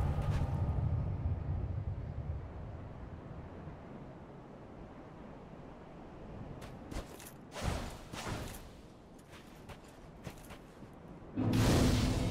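Armoured footsteps crunch over gravel.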